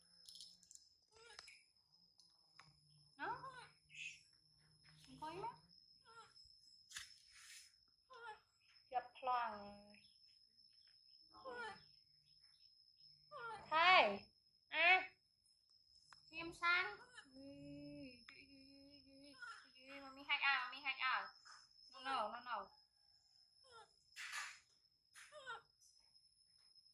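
A young woman talks softly and playfully close by.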